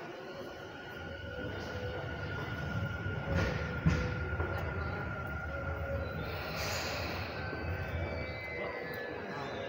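A train idles at a station platform with a low rumble.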